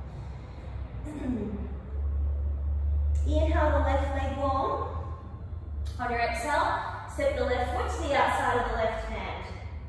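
A woman speaks calmly into a microphone, giving instructions.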